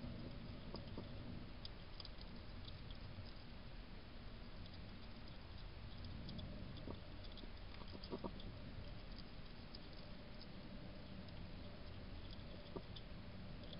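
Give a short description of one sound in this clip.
A porcupine gnaws and crunches food up close.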